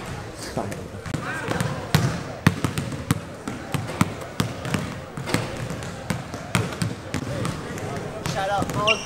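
Basketballs bounce on a wooden court, echoing in a large hall.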